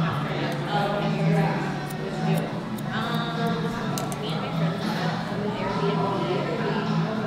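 Scissors snip through wet hair close by.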